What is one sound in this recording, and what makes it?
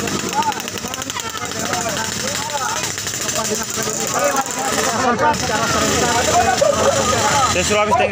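A crowd of young people chatters in the background.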